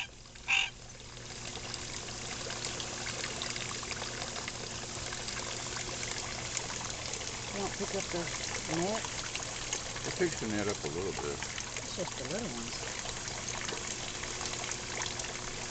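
Water trickles and splashes steadily into a pond.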